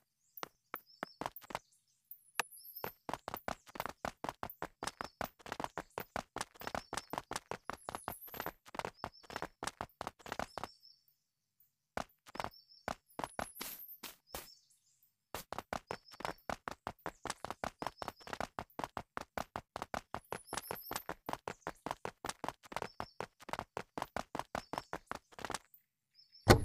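Footsteps crunch steadily on a dirt road.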